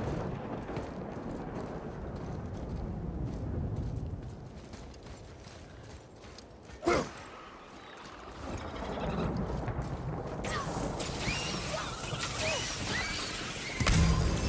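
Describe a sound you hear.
Heavy footsteps crunch over snowy ground.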